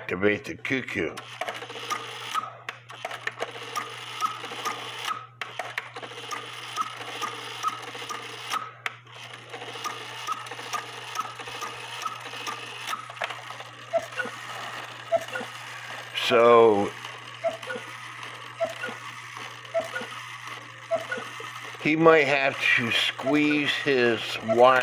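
A clock ticks steadily and quickly.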